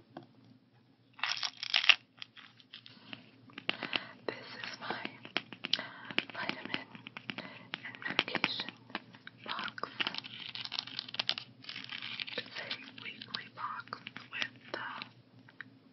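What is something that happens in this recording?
Pills rattle inside a plastic box.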